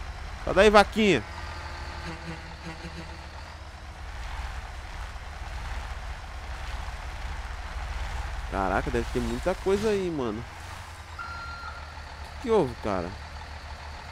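A young man speaks animatedly into a close microphone.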